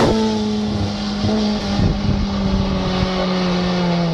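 Tyres crunch on gravel as a car passes.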